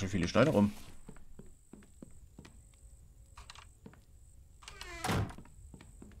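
Footsteps thud slowly across wooden boards.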